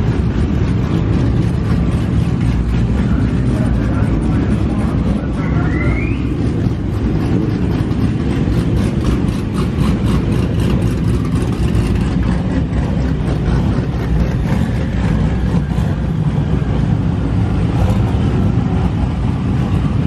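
Car engines idle with a deep, steady rumble.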